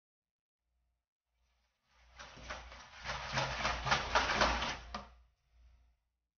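A scraper scrapes against the side of a plastic bucket.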